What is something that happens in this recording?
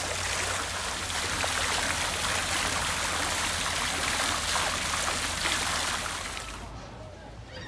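A fountain splashes and gurgles close by.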